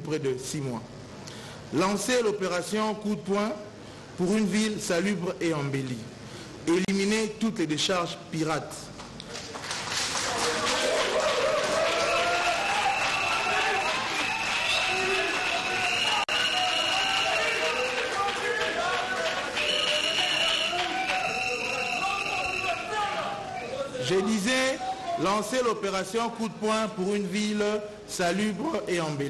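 A man speaks steadily into a microphone, reading out.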